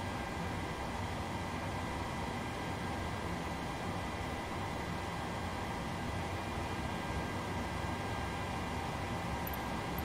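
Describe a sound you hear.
Aircraft cockpit equipment hums steadily.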